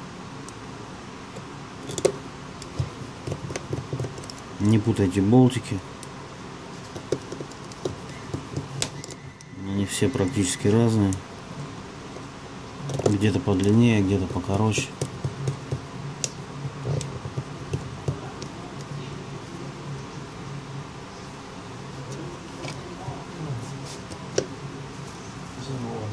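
A small metal tool clicks and taps against a phone's frame.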